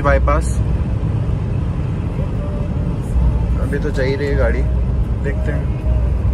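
A car's engine and tyres rumble low and steady on the road.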